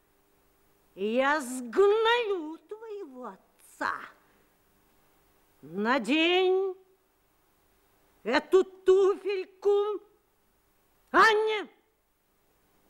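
An older woman speaks close by with theatrical animation, in short bursts.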